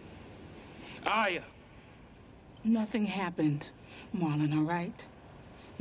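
A woman speaks in an emotional, strained voice.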